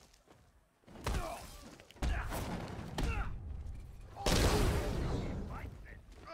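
Heavy blows land with loud thuds and crashes.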